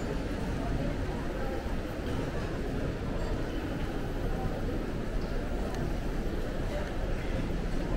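A crowd murmurs steadily in a large echoing indoor space.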